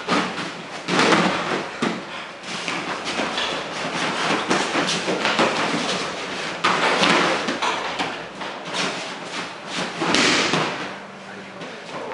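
A body falls with a thud onto a padded mat.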